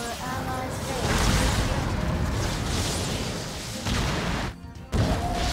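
Explosions boom and crackle in a fierce battle.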